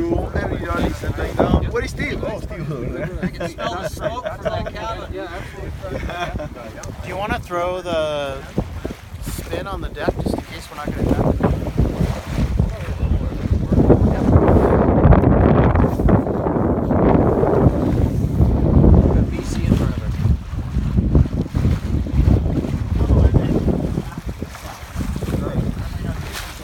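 Water splashes and rushes against a sailboat's hull.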